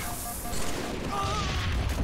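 An energy weapon fires in quick bursts.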